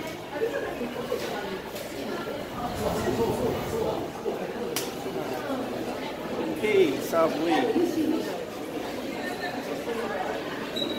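A young man talks casually and close by, with some echo.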